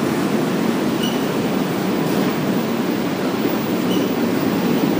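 Train wheels squeal briefly against the rails.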